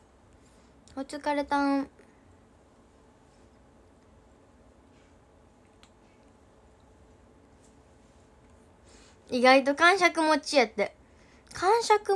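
A young girl speaks softly and close to the microphone, in short bursts with pauses.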